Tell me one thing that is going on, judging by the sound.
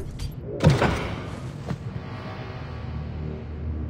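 A heavy metal hatch clanks open.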